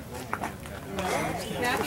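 A young boy cheers loudly.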